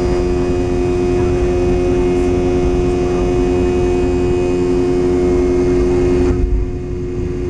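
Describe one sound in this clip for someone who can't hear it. Wheels rumble over a runway and then fall quiet.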